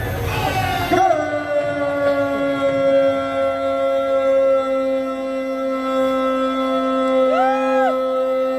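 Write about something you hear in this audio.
A man's voice booms through loudspeakers in long, drawn-out calls.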